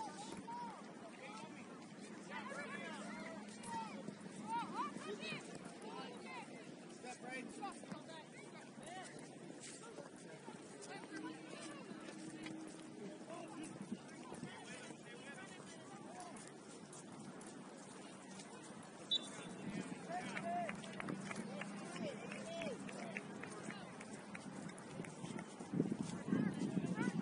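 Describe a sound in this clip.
Spectators and players call out across an open field, heard from a distance.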